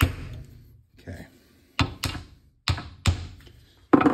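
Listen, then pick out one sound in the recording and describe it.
A hammer taps sharply on a metal punch.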